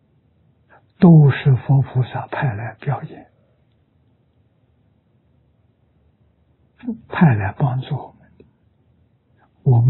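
An elderly man speaks calmly and slowly, with pauses, close to a microphone.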